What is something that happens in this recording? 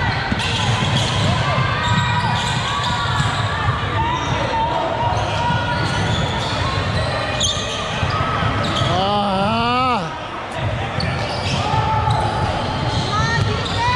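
A crowd of spectators murmurs and calls out.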